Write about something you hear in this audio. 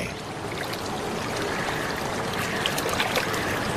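Water trickles and gurgles gently in a stream.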